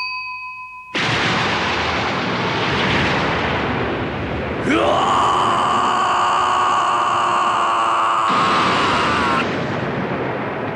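A bolt of electricity crackles and roars.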